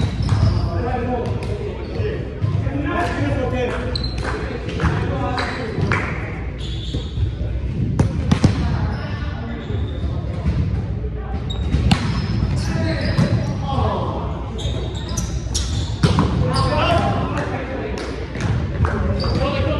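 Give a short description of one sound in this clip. A volleyball thumps against players' hands.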